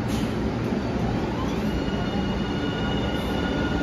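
A train's electric motor whines, rising in pitch as it pulls away.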